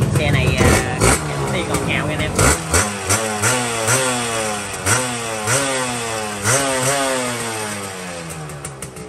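A motorcycle alarm wails in rising and falling chirps.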